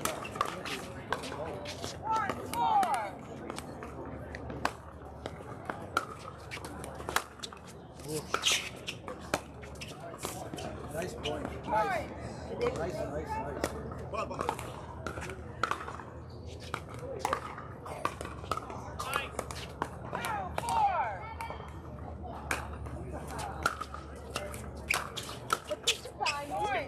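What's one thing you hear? Paddles strike a plastic ball with sharp pops, back and forth.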